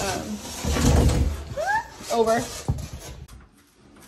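Cardboard rustles and scrapes.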